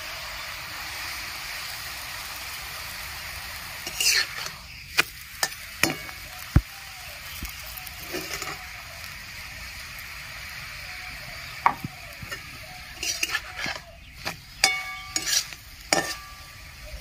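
A flat bread sizzles softly in a hot pan.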